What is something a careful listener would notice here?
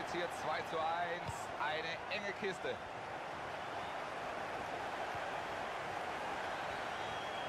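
A stadium crowd murmurs and roars.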